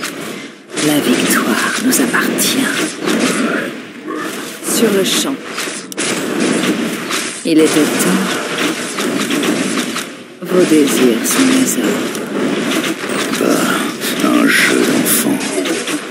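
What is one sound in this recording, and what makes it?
Swords and blows clash in a fantasy battle.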